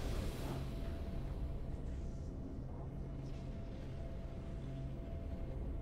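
Triumphant game music plays steadily.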